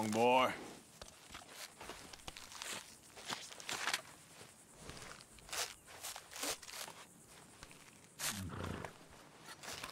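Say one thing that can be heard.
Knife and hands tear wetly at a carcass's hide.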